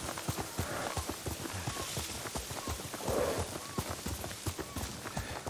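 Horse hooves thud rapidly on soft ground.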